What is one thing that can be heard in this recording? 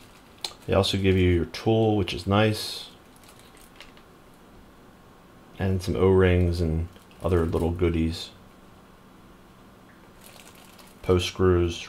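A plastic bag crinkles and rustles in the hands.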